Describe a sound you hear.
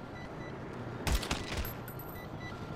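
Pistol shots ring out in quick succession and echo.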